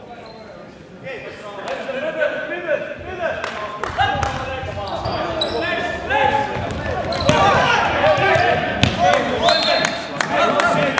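Young men shout and call out across an echoing hall.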